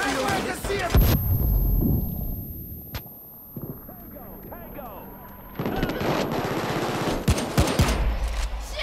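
A high ringing tone whines steadily and then stops.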